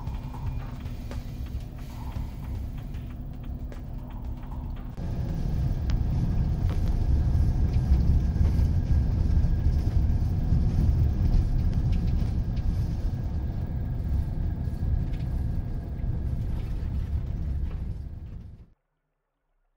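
A car engine rumbles steadily from inside as the car drives along.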